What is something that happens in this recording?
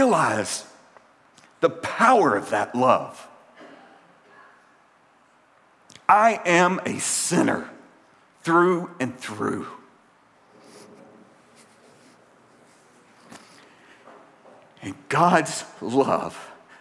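A middle-aged man speaks with feeling through a microphone, pausing between phrases.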